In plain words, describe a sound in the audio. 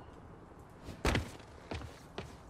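A heavy thump sounds as something lands hard.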